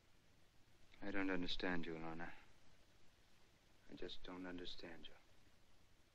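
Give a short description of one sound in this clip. A man speaks calmly and quietly nearby.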